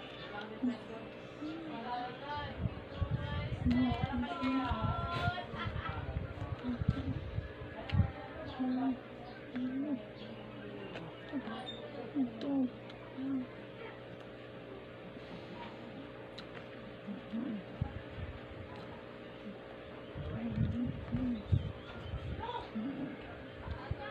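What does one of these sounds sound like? A young woman makes short hums and grunts close to the microphone.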